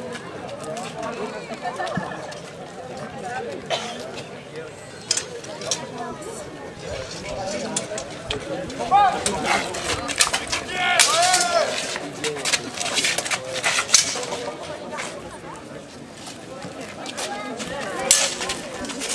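An outdoor crowd of adults and children murmurs and chatters.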